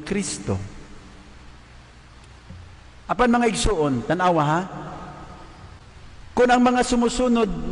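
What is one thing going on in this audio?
A man speaks slowly and solemnly into a microphone, with long pauses, in a large echoing hall.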